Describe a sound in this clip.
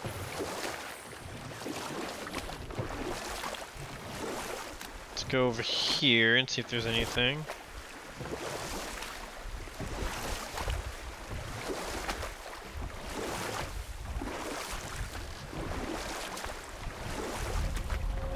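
Oars splash and churn through water.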